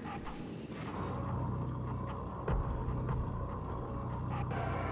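A rolling ball whirs and rattles along a track.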